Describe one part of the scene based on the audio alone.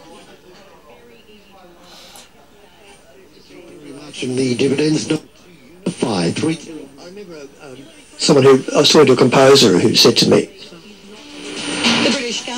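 A man's voice comes faintly through a small loudspeaker, fading in and out.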